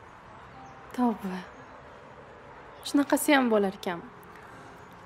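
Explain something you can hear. A young woman laughs softly up close.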